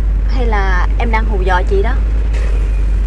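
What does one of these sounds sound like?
A young woman speaks softly and with animation.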